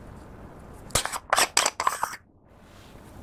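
A metal tin lid twists and pops open.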